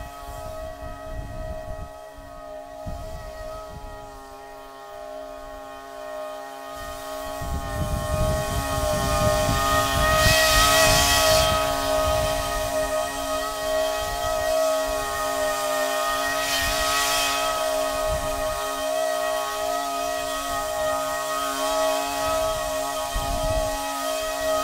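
A lawn mower engine runs steadily nearby, growing louder partway through.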